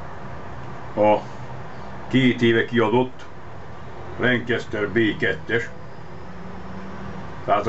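An older man speaks calmly and close by, in short phrases.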